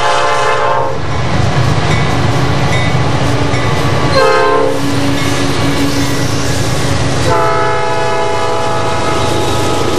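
Diesel freight locomotives roar past at speed.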